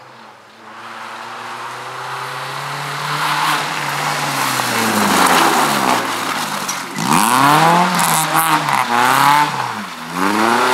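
A rally car engine roars closer, revving hard as it shifts gears.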